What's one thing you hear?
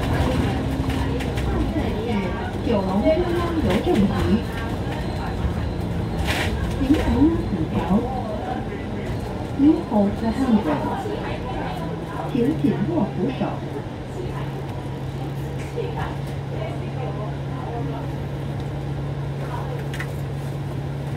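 A bus engine hums steadily as the bus drives along a city street.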